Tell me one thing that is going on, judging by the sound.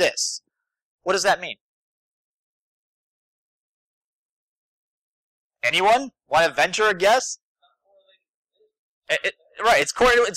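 A man speaks with animation through a microphone, in bursts with pauses.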